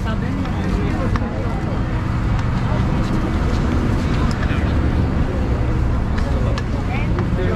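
Footsteps shuffle on pavement outdoors.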